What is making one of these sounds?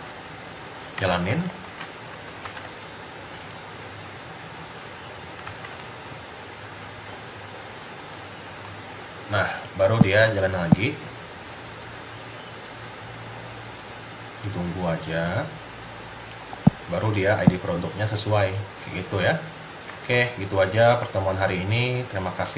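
A young man talks calmly in short bursts, close to a microphone.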